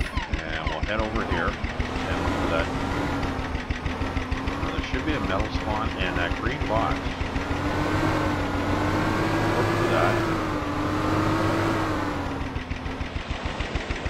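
A small outboard motor drones steadily, rising and falling in pitch.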